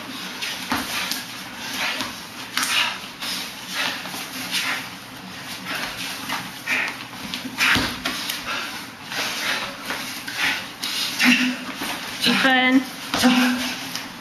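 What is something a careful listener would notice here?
Arms slap and clap against each other in quick sparring blows.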